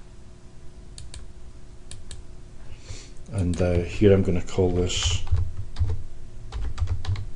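A computer mouse clicks.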